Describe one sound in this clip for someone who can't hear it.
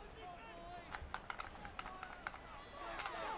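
Football players collide with thudding hits in a tackle.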